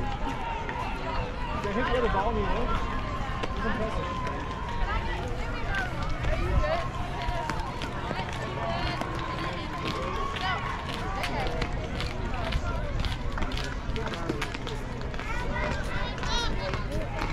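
Young girls shout and cheer across an open field.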